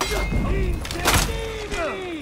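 A heavy blow lands with a loud crash.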